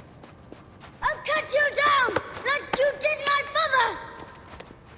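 A young child calls out excitedly.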